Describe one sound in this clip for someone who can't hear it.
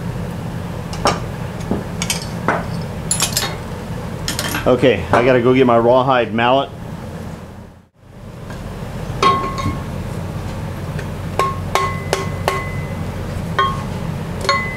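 Metal parts clatter and scrape on a metal bench.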